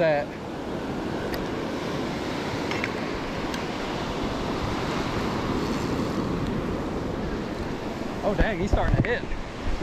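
Waves break and wash steadily onto the shore.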